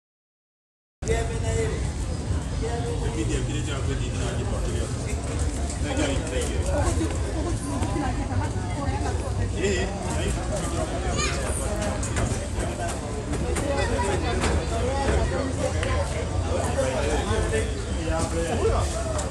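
A woman talks close by.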